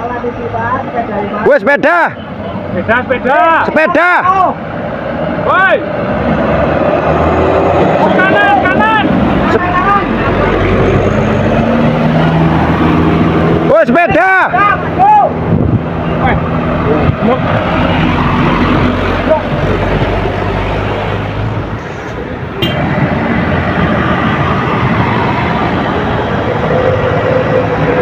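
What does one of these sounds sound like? Laden diesel trucks labour up a slope with deep, rumbling engines.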